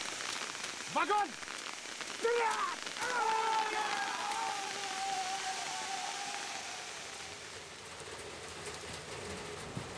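A shower of sparks hisses.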